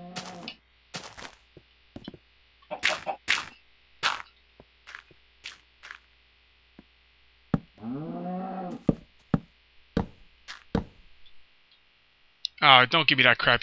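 Dirt blocks thud softly as they are set down one after another.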